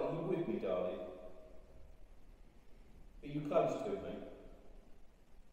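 An elderly man speaks in short bursts in an echoing room.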